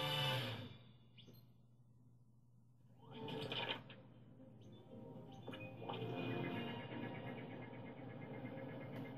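Video game music and jingles play from a television loudspeaker.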